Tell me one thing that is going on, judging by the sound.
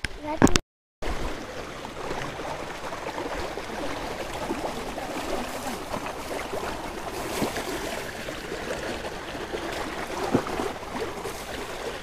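Shallow stream water trickles and splashes steadily.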